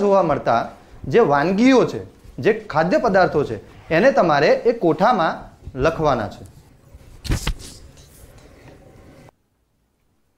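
A young man speaks calmly into a microphone, as if explaining.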